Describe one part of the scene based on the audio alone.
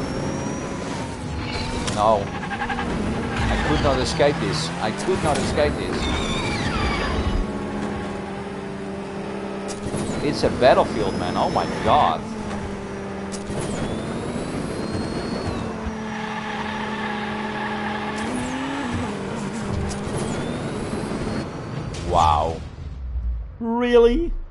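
Racing car engines whine and roar at high speed.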